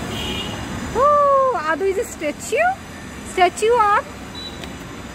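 A young boy shouts and squeals playfully, close by.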